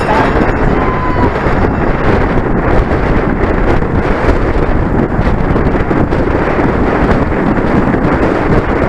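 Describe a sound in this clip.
Wind rushes loudly past a moving bicycle.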